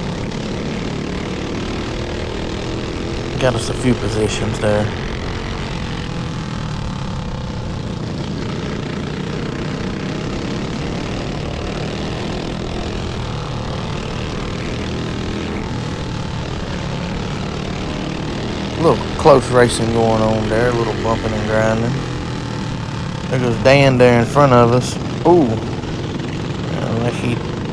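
A small kart engine drones steadily up close at speed.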